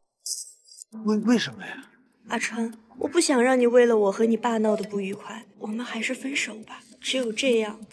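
A young woman speaks calmly and sadly.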